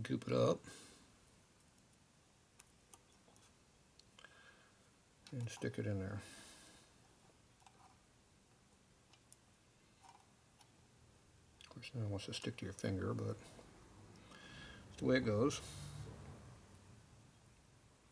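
Small metal parts click softly against an engine casing.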